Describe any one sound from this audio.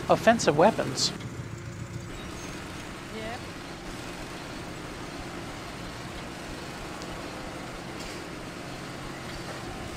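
A low steady hum of tank engines drones on.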